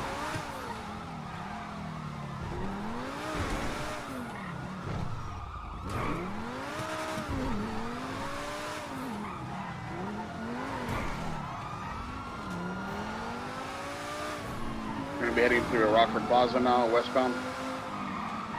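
A sports car engine revs up and down.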